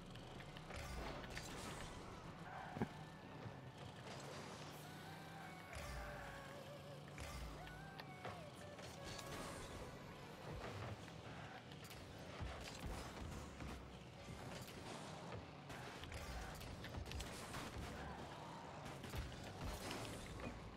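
A sporty car engine hums and revs.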